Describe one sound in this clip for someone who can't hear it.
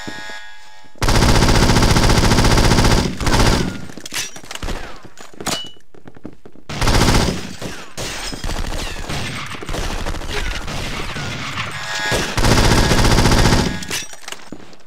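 A rifle fires rapid, loud bursts close by.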